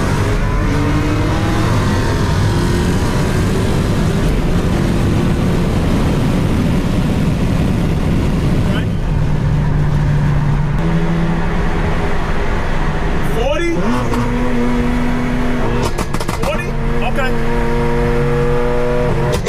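A supercharged V8 car accelerates at full throttle.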